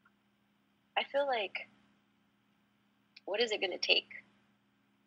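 A woman speaks calmly into a microphone, in short phrases.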